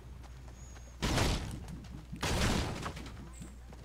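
A pickaxe whooshes through the air.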